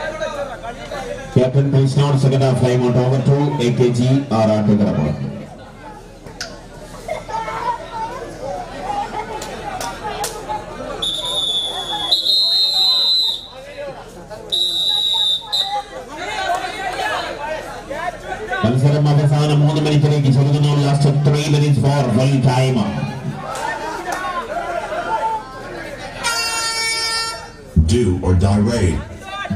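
A crowd cheers and chatters loudly.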